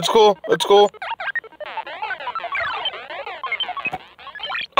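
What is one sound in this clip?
Electronic video game bleeps and chirps play in quick runs.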